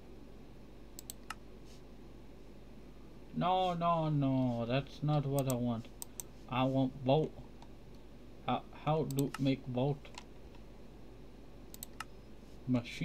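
Menu buttons click softly.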